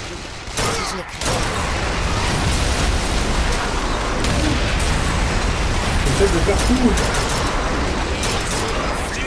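Gunfire crackles and bursts in rapid volleys.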